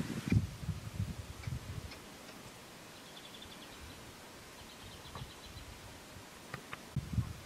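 An antelope laps water at the edge of a pool.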